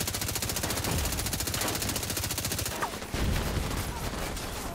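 Explosions boom.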